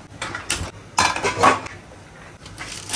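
A metal pan clanks onto a stove grate.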